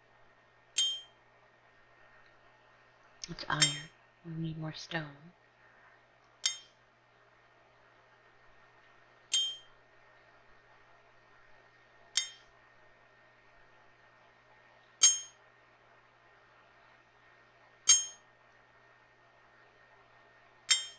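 A pickaxe strikes rock with sharp, ringing blows at a steady pace.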